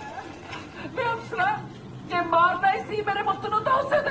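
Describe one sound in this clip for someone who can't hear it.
An older woman speaks with emotion.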